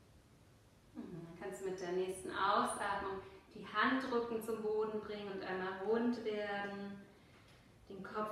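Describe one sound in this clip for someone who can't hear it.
A woman speaks calmly and softly close to a microphone.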